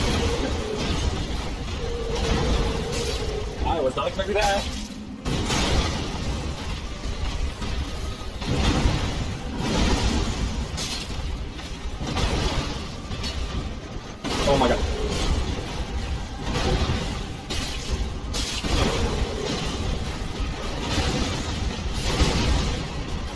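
Heavy weapons clash and thud in a fight.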